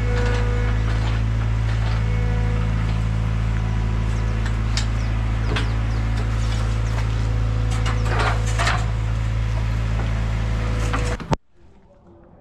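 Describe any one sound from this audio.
A pressure washer drones steadily and loudly.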